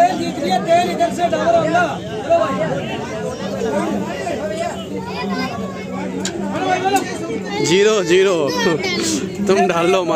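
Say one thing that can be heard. A crowd of people chatters loudly nearby.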